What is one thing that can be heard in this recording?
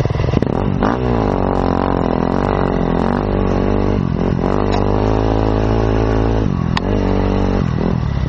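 A dirt bike engine revs loudly up and down, close by.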